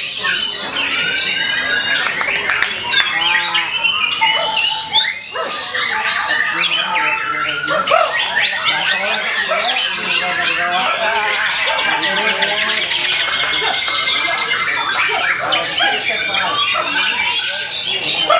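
Many other birds chirp and sing all around.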